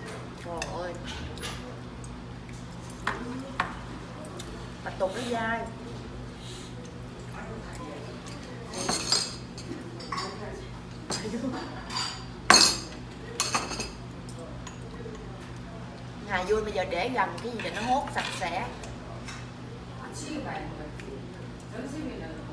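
Chopsticks clink against dishes.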